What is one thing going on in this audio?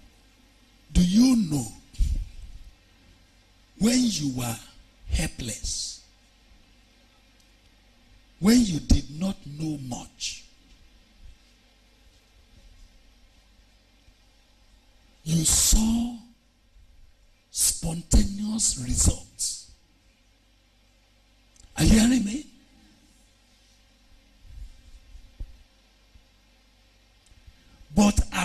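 A man preaches with animation into a microphone, in short loud bursts separated by pauses.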